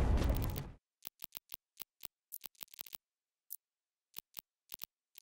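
Short soft clicks tick one after another as a menu is stepped through.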